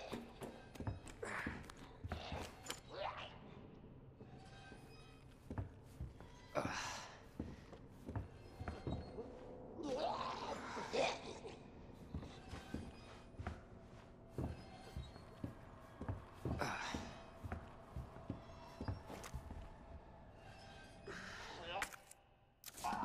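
Boots thud on wooden floorboards at a steady walking pace.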